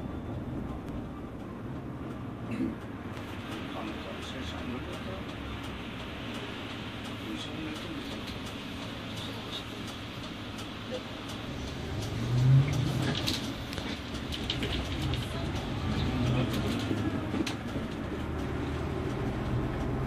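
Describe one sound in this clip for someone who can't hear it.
A bus engine rumbles steadily as the bus drives along a road.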